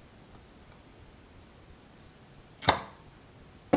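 Metal tweezers tap and click against a small part.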